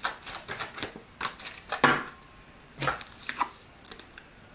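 Playing cards flick and shuffle between hands.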